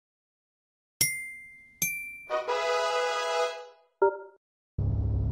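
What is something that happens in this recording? A short electronic jingle plays.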